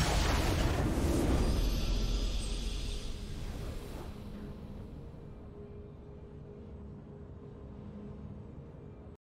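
Triumphant game music swells and then slowly fades.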